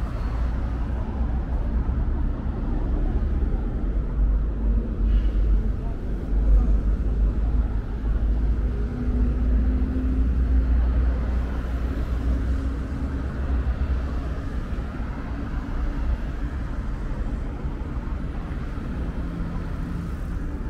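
City traffic rumbles steadily along a nearby road.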